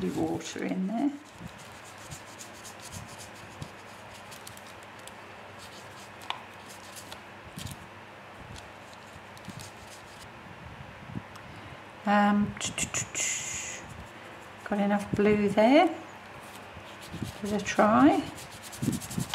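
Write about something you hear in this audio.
A small brush strokes softly across paper.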